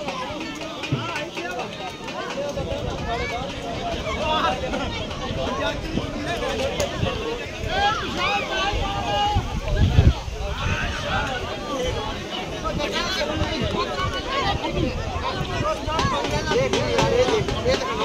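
A large outdoor crowd of men chatters and calls out.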